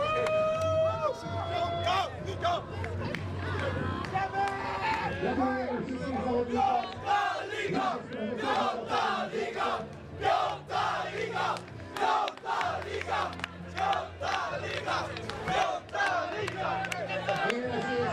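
Young men shout and cheer in celebration.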